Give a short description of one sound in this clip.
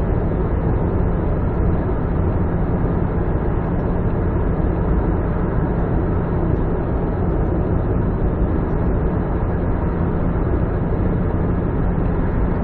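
A car engine hums steadily as the car drives fast through an echoing tunnel.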